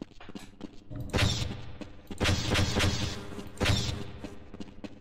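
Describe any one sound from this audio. Energy weapons fire in loud, rushing blasts.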